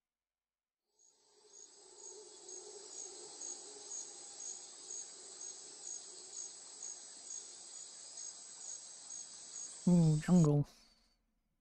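Soft game music plays with a steady, evenly repeating twinkling chime.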